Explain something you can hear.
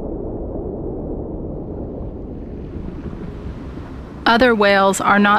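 Deep water rumbles in a low, steady wash.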